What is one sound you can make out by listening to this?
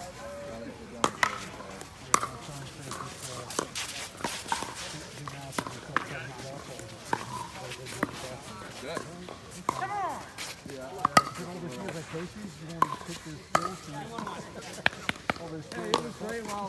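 Paddles pop sharply against a plastic ball in a quick rally.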